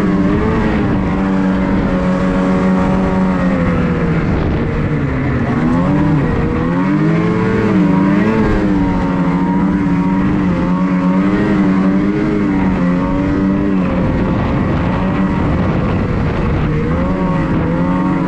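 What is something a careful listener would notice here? A snowmobile engine roars loudly and steadily, rising and falling in pitch as the throttle changes.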